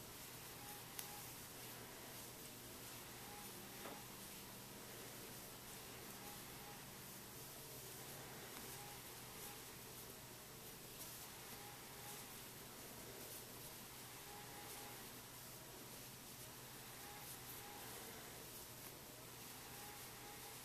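A crochet hook softly scrapes and rustles through yarn.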